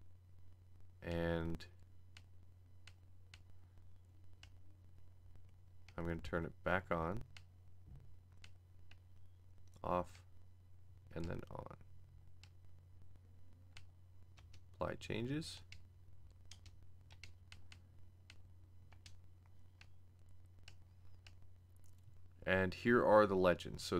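A game menu ticks softly as options are scrolled through.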